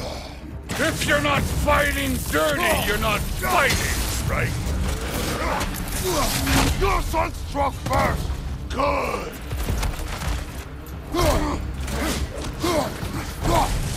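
A deep-voiced man speaks gruffly and with force, close by.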